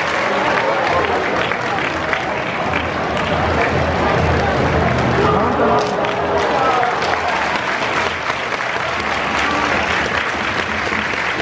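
A large crowd cheers and chants in an open stadium.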